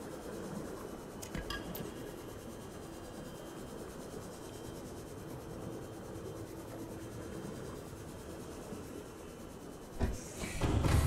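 A small submarine's engine hums steadily underwater.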